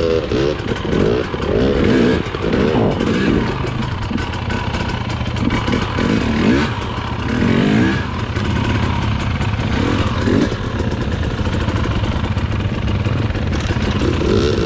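A dirt bike engine revs loudly, rising and falling in pitch.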